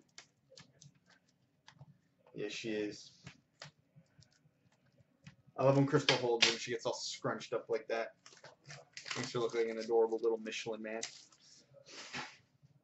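Cardboard packs tap and rustle as they are handled.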